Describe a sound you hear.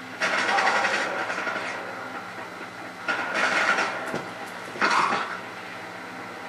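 Explosions boom loudly.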